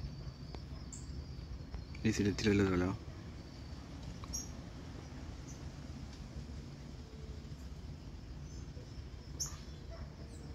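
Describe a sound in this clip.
A small bird chirps in short, sharp calls now and then.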